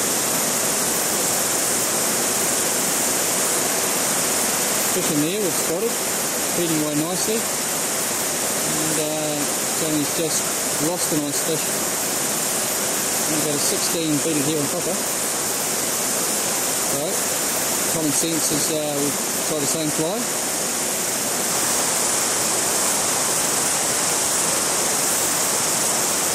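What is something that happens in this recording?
A shallow stream ripples and gurgles steadily over stones.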